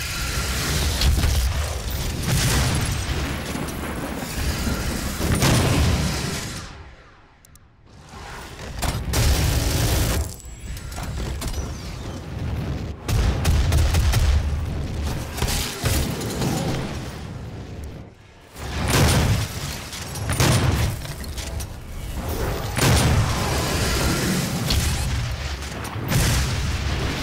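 Shotgun blasts boom repeatedly.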